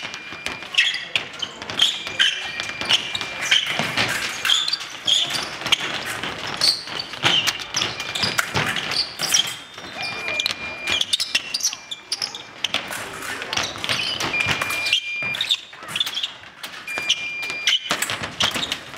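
Fencing blades clash and scrape rapidly.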